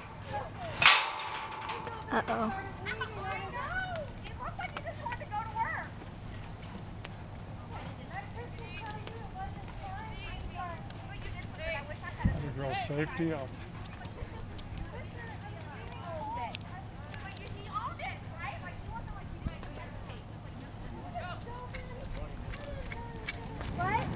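A horse gallops over dirt at a distance, its hooves thudding softly.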